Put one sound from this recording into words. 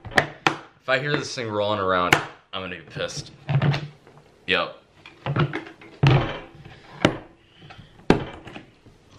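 Plastic latches on a case snap open with sharp clicks.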